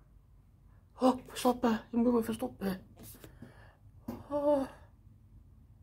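A young man talks to a microphone with animation.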